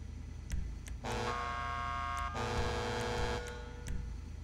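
A car horn honks in several long blasts.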